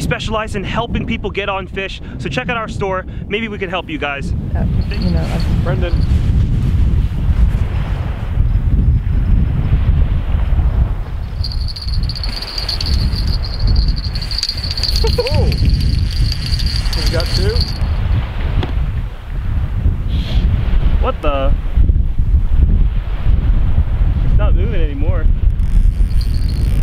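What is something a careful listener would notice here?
Strong wind rumbles across the microphone outdoors.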